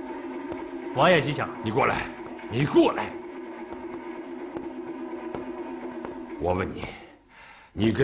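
A man speaks firmly.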